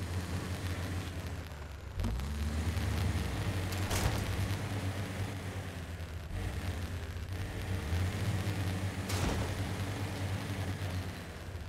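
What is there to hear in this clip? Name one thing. A truck engine rumbles low and revs unevenly.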